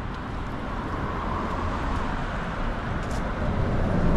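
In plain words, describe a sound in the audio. A car drives past on the road.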